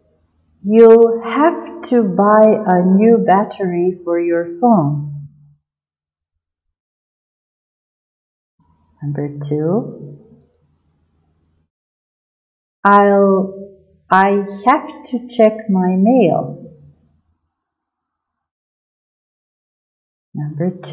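A woman reads short sentences aloud clearly through a microphone, with pauses between them.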